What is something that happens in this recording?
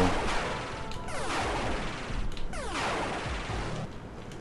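Electronic laser shots zap in quick, falling bursts.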